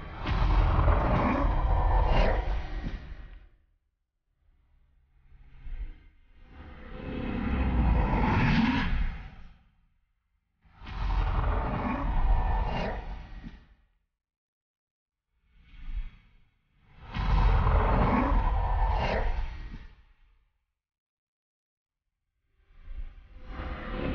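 Monsters roar and snarl in loud bursts.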